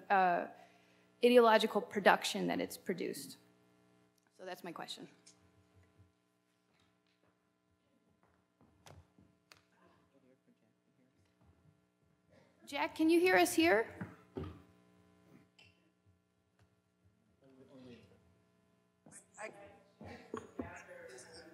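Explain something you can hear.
A woman speaks into a microphone in a large echoing hall.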